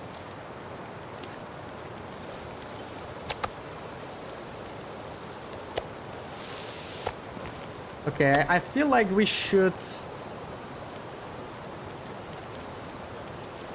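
A campfire crackles softly.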